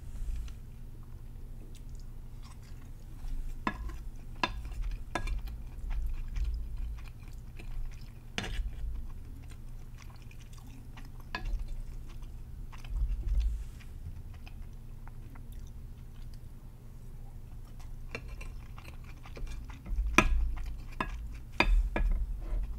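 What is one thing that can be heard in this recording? A young woman chews food wetly, close to a microphone.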